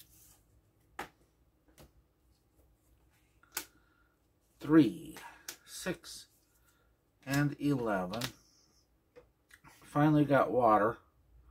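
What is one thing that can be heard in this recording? Playing cards tap down onto a table.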